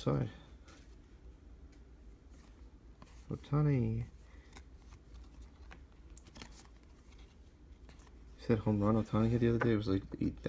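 Trading cards softly slide and flick against each other.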